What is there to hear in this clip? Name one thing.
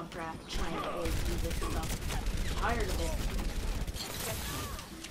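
Gunshots fire rapidly in a game.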